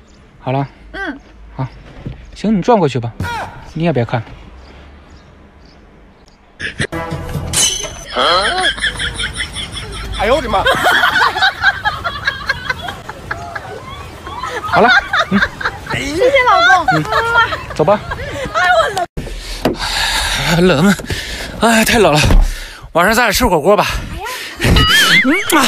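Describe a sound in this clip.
A young woman speaks cheerfully and close by.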